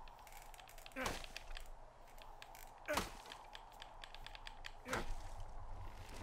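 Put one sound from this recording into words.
An axe chops into a tree trunk with sharp thuds.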